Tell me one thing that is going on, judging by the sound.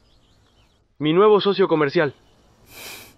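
A young man speaks softly.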